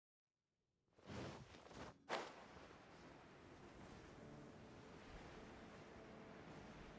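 Wind rushes steadily as a character glides through the air.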